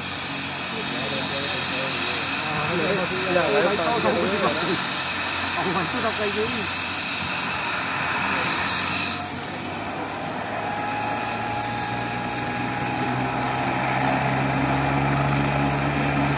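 A helicopter's engine whines and its rotor whirs steadily nearby, outdoors.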